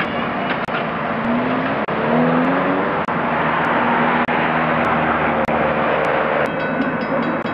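Diesel locomotive engines rumble steadily nearby.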